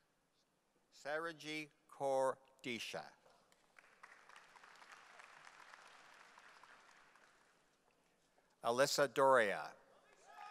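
An older man reads out names through a microphone in a large echoing hall.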